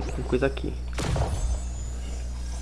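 A magical burst whooshes and shimmers.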